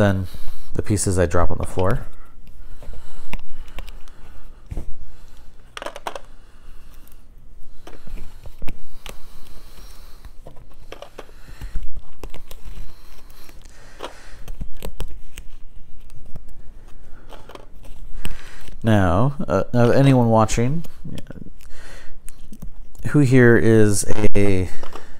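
Plastic packaging crinkles and rustles in a man's hands.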